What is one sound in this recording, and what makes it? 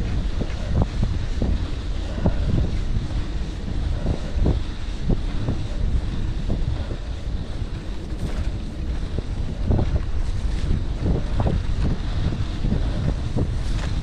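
Bicycle tyres crunch and rattle over a rough gravel track.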